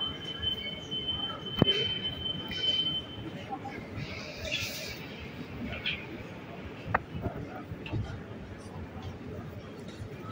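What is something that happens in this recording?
A busy street murmurs with distant chatter outdoors.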